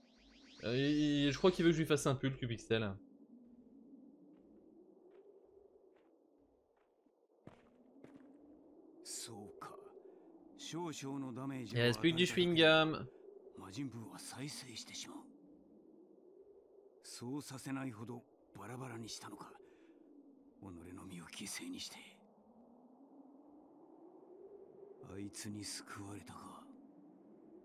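A young man talks in bursts with animation, close to a microphone.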